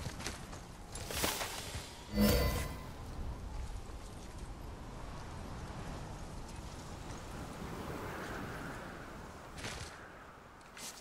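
Wind blows steadily across an open mountainside.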